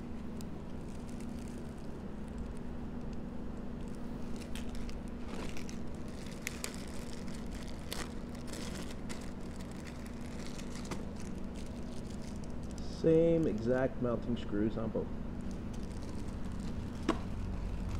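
Plastic bags crinkle and rustle in hands.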